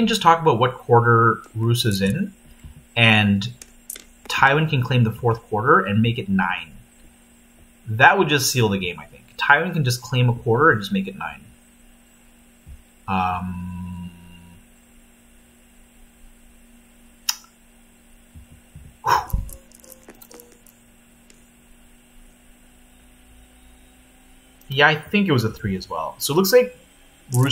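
A man talks calmly into a close microphone, with pauses.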